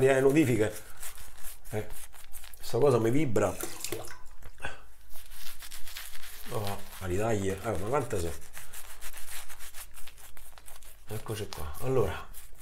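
A shaving brush swishes and scrubs lather on a stubbly face.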